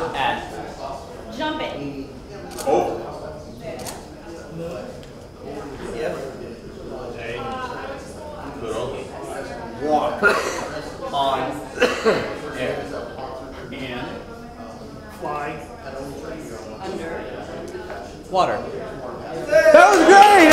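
A man speaks calmly to a group.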